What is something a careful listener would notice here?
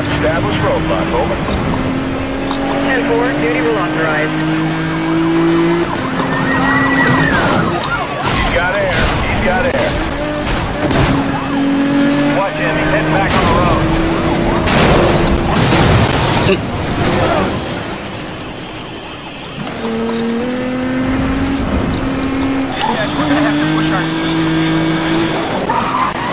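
A race car engine roars and revs up through the gears.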